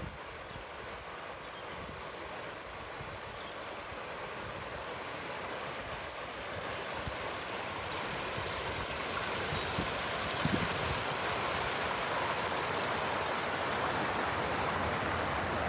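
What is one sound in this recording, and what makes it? River water rushes steadily over a low weir, growing louder and closer.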